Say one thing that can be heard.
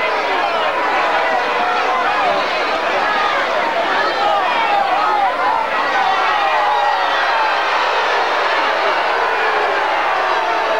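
Many voices of young men and boys chatter and call out at once, outdoors.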